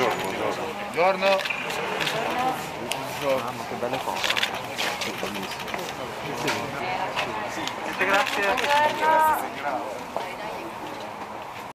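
Several men and women talk and call out nearby outdoors.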